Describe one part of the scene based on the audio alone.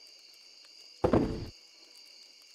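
A wooden chest in a game thuds shut.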